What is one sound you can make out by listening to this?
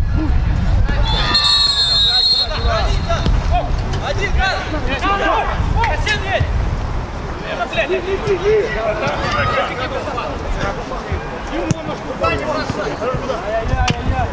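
Footballers shout to each other across an open pitch outdoors.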